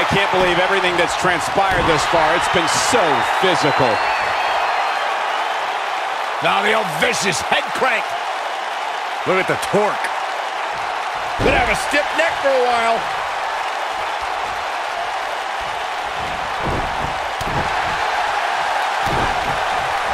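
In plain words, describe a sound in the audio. A large crowd cheers and murmurs steadily in an echoing arena.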